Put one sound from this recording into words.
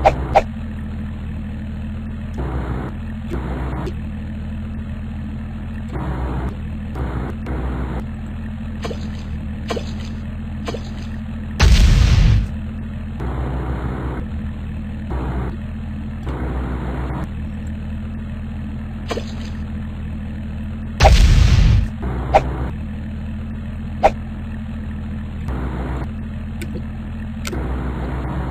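A small boat motor hums steadily.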